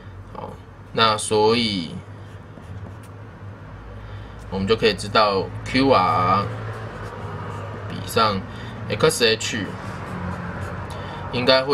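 A young man speaks calmly into a nearby microphone, explaining.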